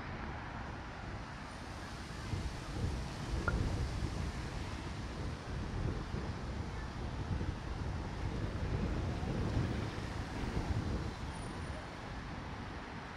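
City traffic rumbles steadily in the distance.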